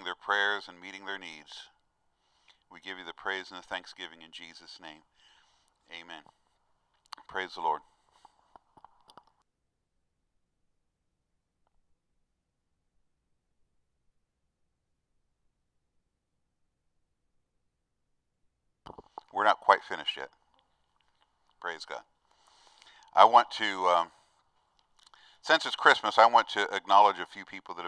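A middle-aged man speaks calmly into a microphone, with long pauses.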